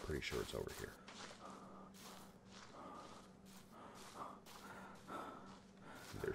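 Footsteps rustle through dry grass at a steady walking pace.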